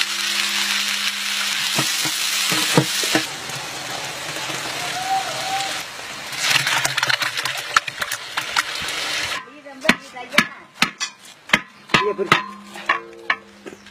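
A metal ladle scrapes against the side of a pot.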